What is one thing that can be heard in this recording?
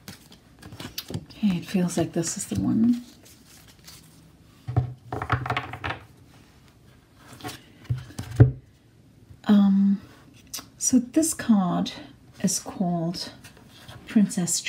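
Cards rustle and tap against a table as they are handled.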